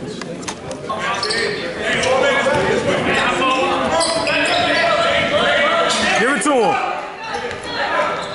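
A crowd of spectators chatters and calls out in an echoing gym.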